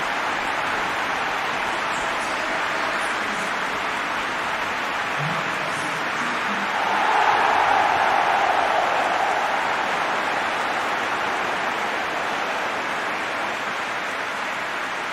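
A large crowd roars steadily in a stadium, swelling louder for a while.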